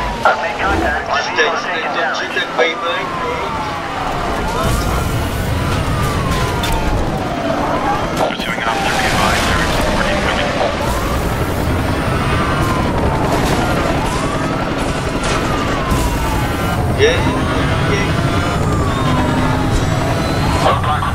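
A car engine roars at high revs as the car speeds along.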